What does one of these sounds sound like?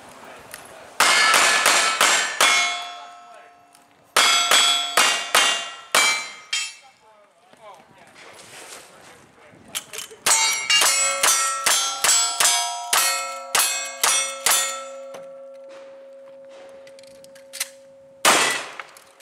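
Steel targets ring with a clang after being hit.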